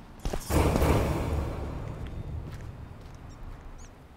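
A bright chime swells and slowly fades.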